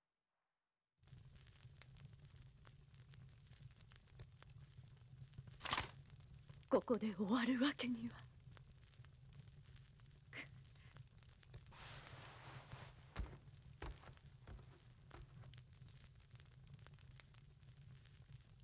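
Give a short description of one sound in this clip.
A torch fire crackles softly.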